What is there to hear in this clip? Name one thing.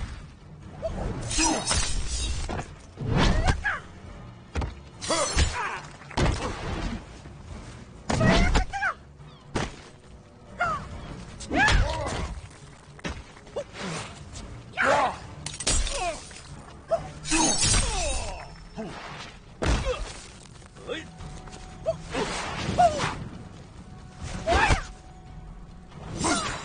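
Punches and kicks land with heavy thuds and smacks again and again.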